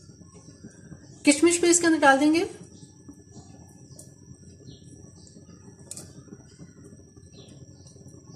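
Liquid simmers softly in a pan.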